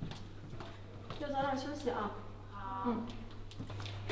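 A young woman calls out in an echoing hallway.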